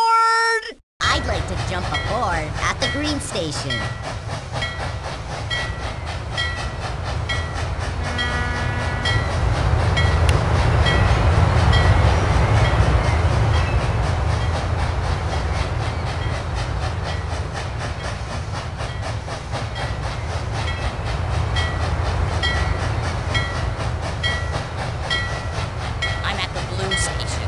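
A toy steam train chugs steadily along its track.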